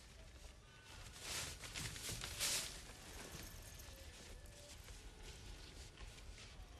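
Paper rustles as a scroll is handled.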